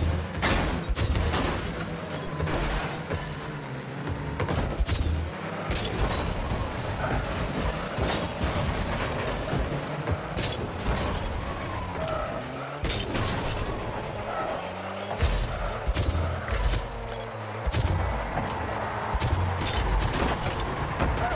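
A ball thuds when a car hits it.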